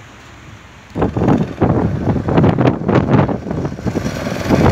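A go-kart engine buzzes loudly as it drives past nearby.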